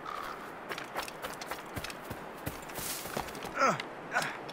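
Grass and bushes rustle as someone pushes through.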